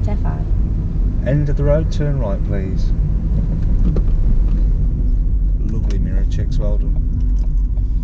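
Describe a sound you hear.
A man talks calmly close by inside a car.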